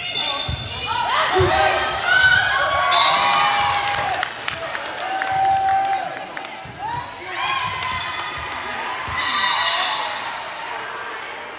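Young women players shout and cheer in an echoing gym.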